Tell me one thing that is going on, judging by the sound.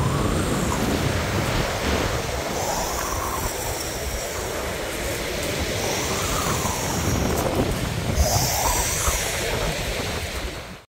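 Waves crash and roll onto a pebble shore.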